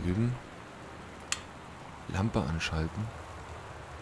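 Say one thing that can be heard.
A lamp switch clicks once.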